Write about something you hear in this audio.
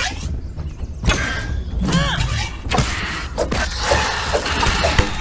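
A giant spider's legs clatter as it scuttles closer.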